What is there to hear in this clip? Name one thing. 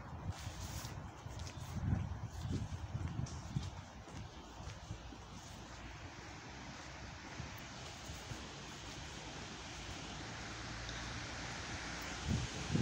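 Rain falls steadily outdoors, hissing on wet pavement.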